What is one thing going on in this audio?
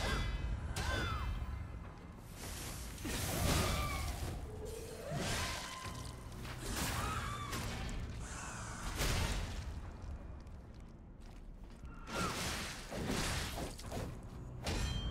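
Swords clang and slash in sharp metallic bursts.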